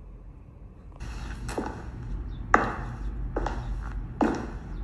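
A drama plays through a small tablet speaker.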